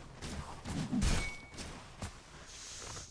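Clashing blows and magic blasts of a fight ring out in quick bursts.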